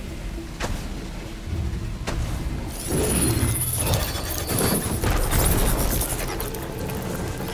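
Metal machine parts clank and whir heavily during a fight.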